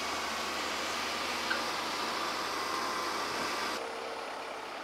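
A tractor engine rumbles as a tractor pulls a trailer.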